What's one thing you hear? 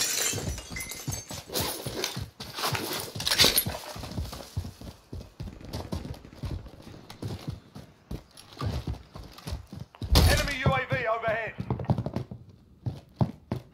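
Quick footsteps thud on the ground.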